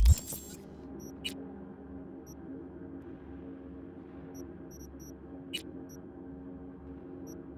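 Short, soft electronic beeps sound now and then.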